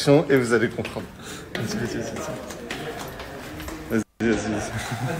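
A young man laughs loudly close to the microphone.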